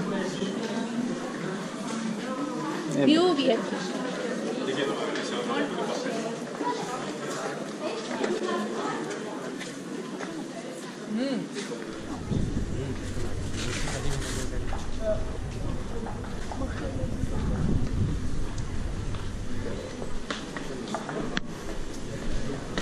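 Footsteps shuffle on stone steps.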